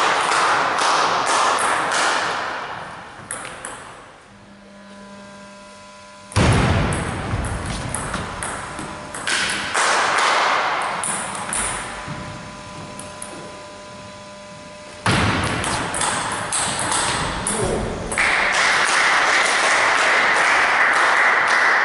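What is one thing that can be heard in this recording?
A ping-pong ball clicks sharply back and forth on paddles and a table in an echoing hall.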